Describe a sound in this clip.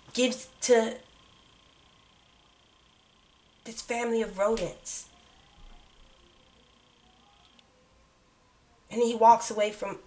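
A woman speaks close by, with animation, in short bursts.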